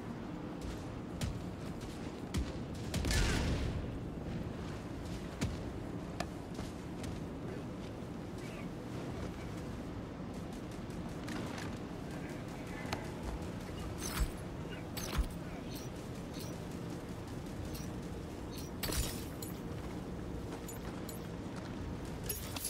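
Heavy boots clank on metal and rock.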